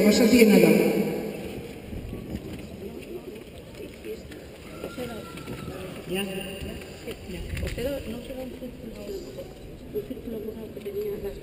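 Men and women murmur and talk quietly outdoors.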